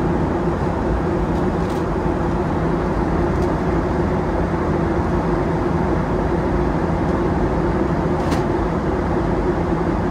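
A jet airliner's engines roar in a steady, deep drone.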